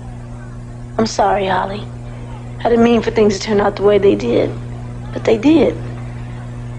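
A young woman speaks earnestly nearby.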